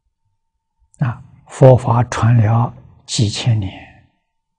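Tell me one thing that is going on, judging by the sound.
An elderly man speaks calmly and warmly into a close microphone.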